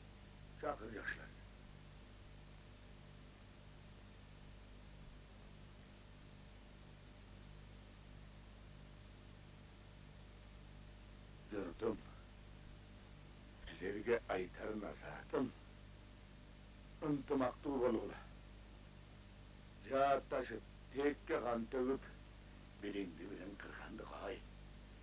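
An elderly man speaks slowly and gravely, in short phrases with pauses.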